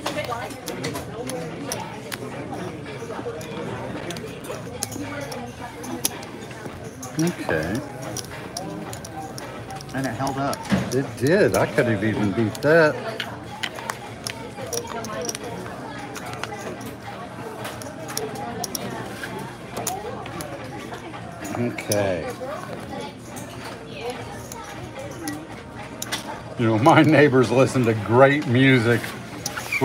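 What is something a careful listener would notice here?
Casino chips clack together as they're stacked and placed.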